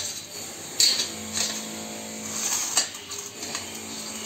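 A metal ladle scrapes and presses food through a wire strainer.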